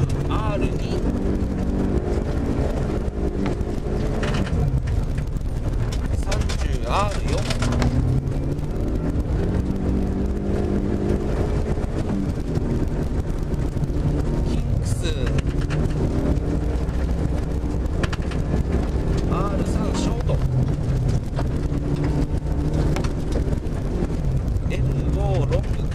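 A car engine drones loudly, rising and falling in pitch as it revs.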